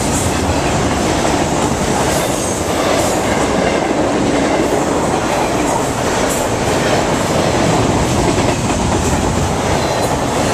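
Train wheels clatter and squeal on the rails.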